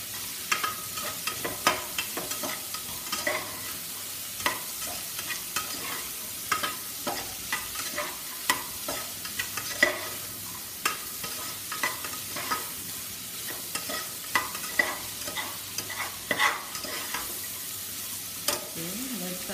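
A metal spoon clanks against a pressure cooker pot while stirring vegetables.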